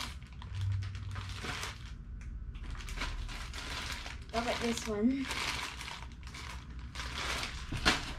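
A plastic bag crinkles in a girl's hands.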